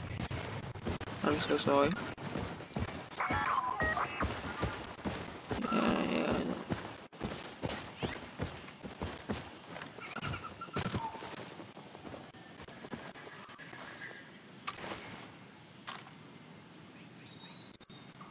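Footsteps crunch steadily over the ground.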